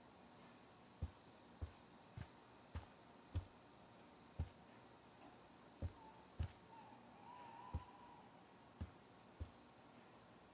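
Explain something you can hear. Footsteps thud softly on a wooden floor at a walking pace.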